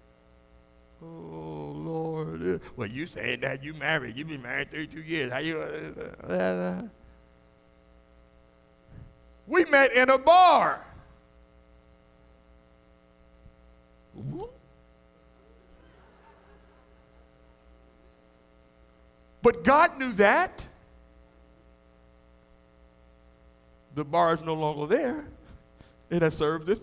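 A man preaches with animation through a microphone in an echoing hall, in bursts with pauses.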